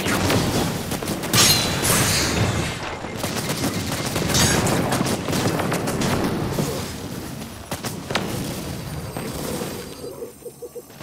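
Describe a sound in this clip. Energy weapons fire and blasts go off in rapid bursts.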